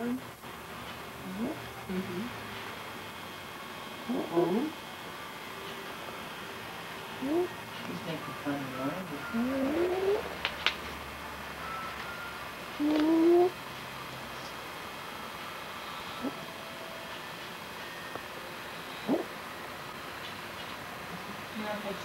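A young child talks softly and sleepily close by.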